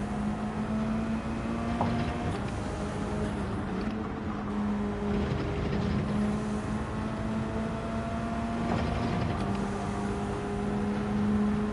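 A racing car engine drones steadily, shifting pitch as gears change.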